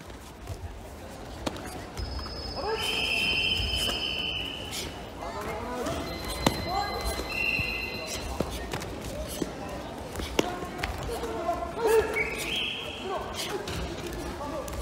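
Kicks and punches land with dull thuds in a large echoing hall.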